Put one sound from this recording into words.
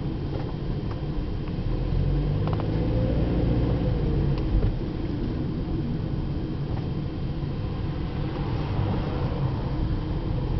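A car engine hums steadily from inside the car as it drives along.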